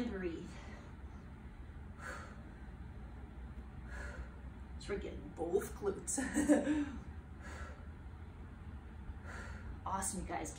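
A woman breathes out hard in short, regular breaths.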